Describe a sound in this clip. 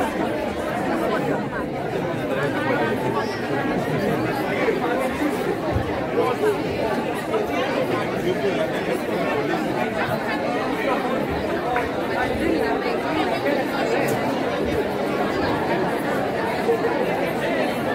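A crowd of men and women murmurs and talks indoors.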